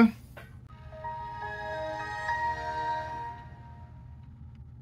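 A computer plays a short startup chime.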